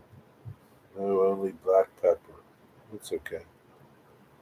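A middle-aged man speaks briefly and calmly, close to the microphone.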